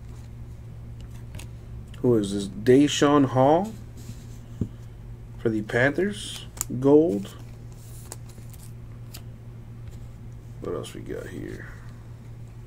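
Trading cards slide and rustle against each other in hands.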